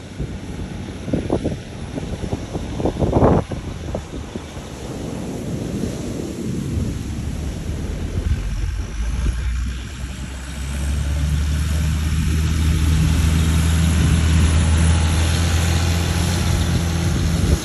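Waves wash gently onto the shore.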